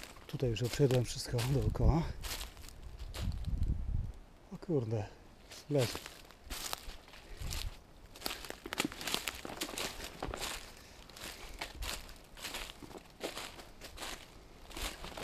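Dry leaves crunch and rustle under footsteps.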